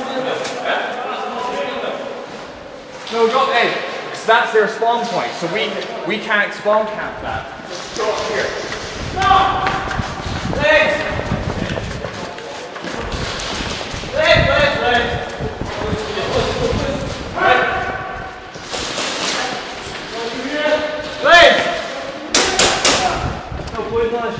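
Men talk with animation close by, in a large echoing hall.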